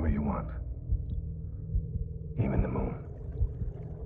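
A man speaks slowly and quietly, close by.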